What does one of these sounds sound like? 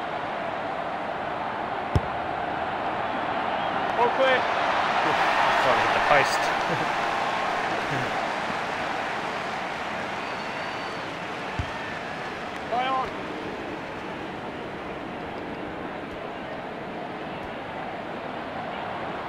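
A large stadium crowd roars steadily, swelling and then easing off.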